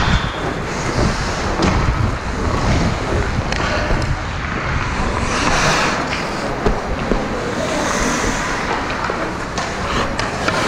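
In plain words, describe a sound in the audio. A hockey stick taps a puck on the ice.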